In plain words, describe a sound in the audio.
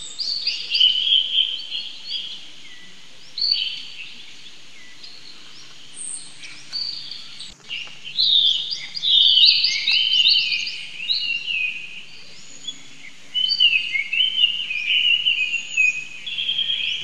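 A baby monkey squeaks with short, high, rising cries.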